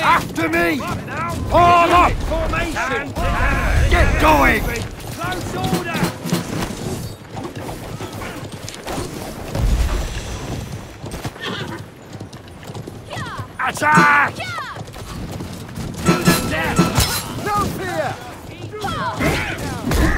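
Horse hooves thud at a gallop.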